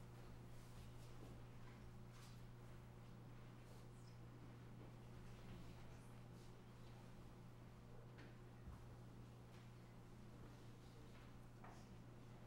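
People shuffle forward on a carpeted floor.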